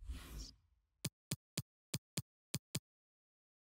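Short menu clicks tick several times in a row.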